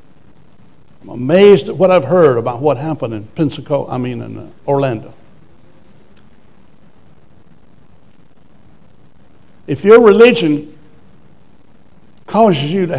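An elderly man speaks with emphasis through a microphone, with long pauses.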